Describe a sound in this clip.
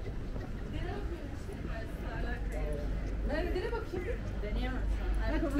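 Young men and women talk casually nearby.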